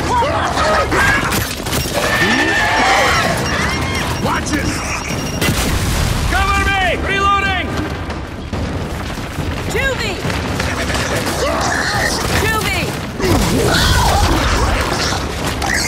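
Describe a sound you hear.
Creatures screech and growl.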